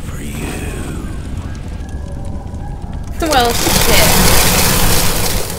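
A young woman talks close to a microphone.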